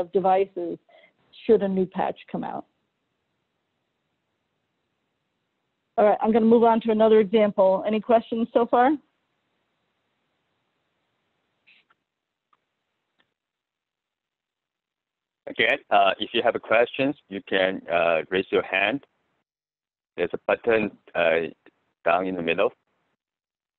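A woman speaks calmly through an online call, with pauses.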